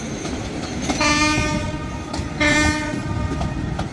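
A train horn sounds twice.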